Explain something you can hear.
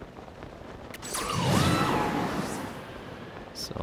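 A strong gust of rising wind whooshes upward.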